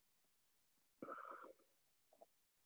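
A man speaks briefly and calmly over an online call.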